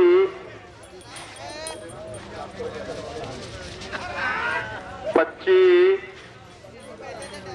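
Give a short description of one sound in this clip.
Bulls' hooves thud on soft dirt as they run past.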